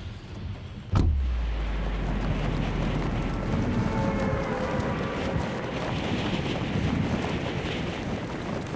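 Wind rushes past during a freefall through the air.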